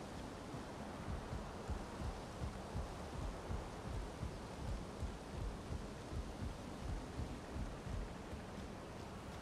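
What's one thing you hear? Heavy footsteps thud on wooden planks.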